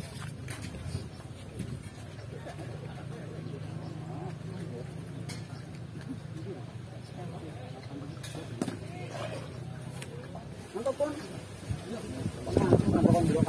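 Men talk nearby with excitement, outdoors.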